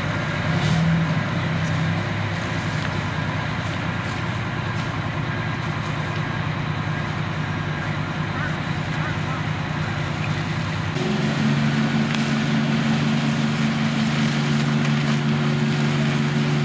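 A large fire roars and crackles outdoors.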